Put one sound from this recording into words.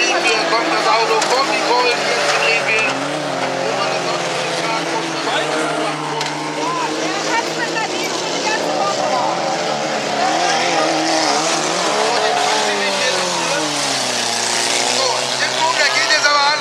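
Several car engines rev and roar loudly outdoors.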